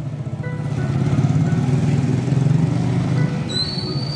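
A motorcycle engine hums past.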